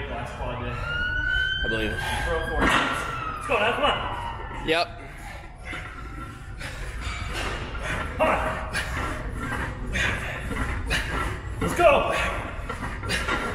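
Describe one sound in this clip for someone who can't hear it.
A weight machine clanks rhythmically.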